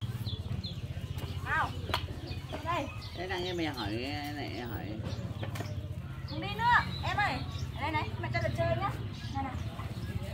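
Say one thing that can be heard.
A young woman talks softly to small children close by.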